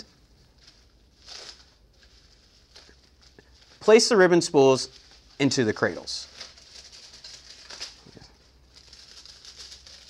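Plastic wrapping crinkles in a man's hands.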